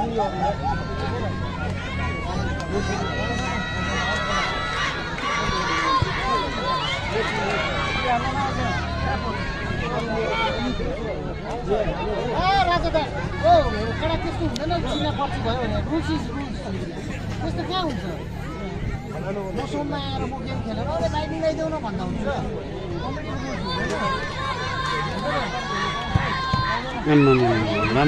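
A large outdoor crowd of men and women shouts and cheers throughout.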